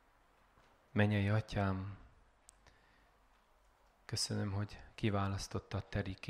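A young man speaks calmly into a microphone through loudspeakers.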